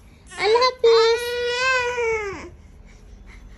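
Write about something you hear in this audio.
A young child cries out loudly in a long, high wail close by.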